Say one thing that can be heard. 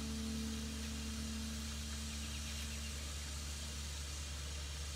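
A keyboard holds a steady note, then stops.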